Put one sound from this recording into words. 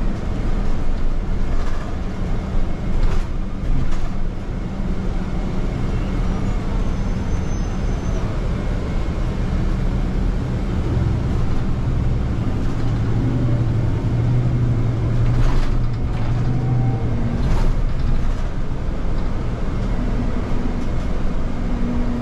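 A bus rattles and clunks as it rolls over the road.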